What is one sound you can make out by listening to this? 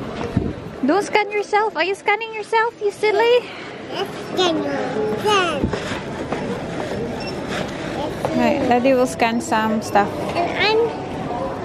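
A young girl giggles.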